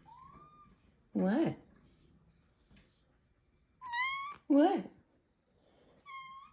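A cat meows loudly and repeatedly close by.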